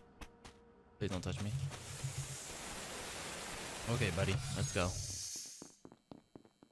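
A door hisses open with a spray of air.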